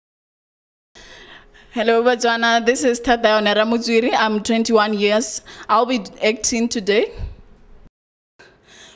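A young woman speaks with animation into a microphone, heard through a loudspeaker.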